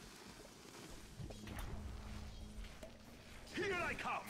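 Magic spells crackle and burst.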